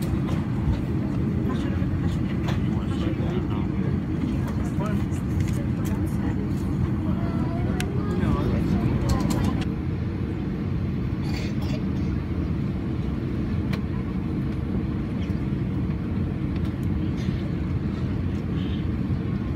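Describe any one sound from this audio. A jet airliner's engines rumble steadily, heard from inside the cabin.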